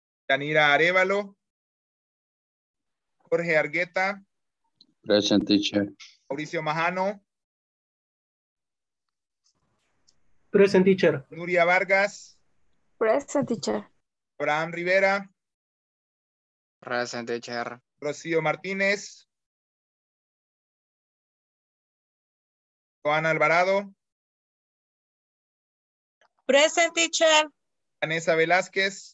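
A man speaks with animation over an online call, in bursts with pauses.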